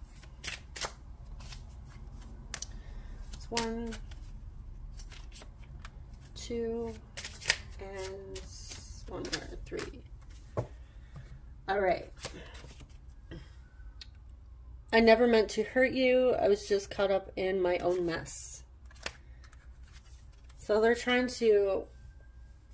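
Playing cards slide and tap softly as they are laid down on a table.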